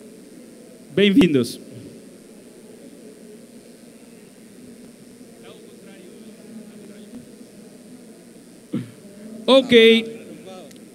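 A man speaks loudly through a loudspeaker in a large hall.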